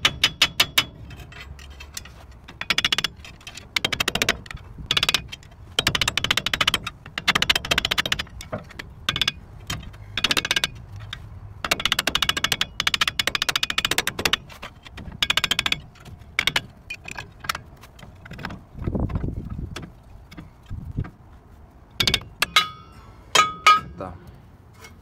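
Metal tools clink and scrape against brake parts.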